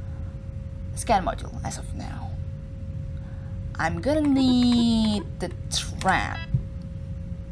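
Electronic menu tones chirp and sweep in pitch.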